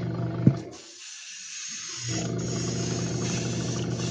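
An airbrush hisses steadily as it sprays paint.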